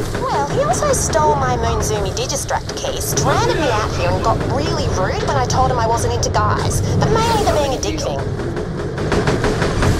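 Monsters roar and growl.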